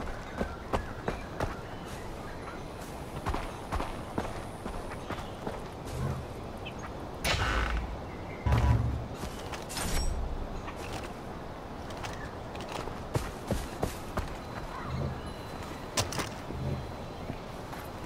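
Footsteps crunch through grass and over dirt.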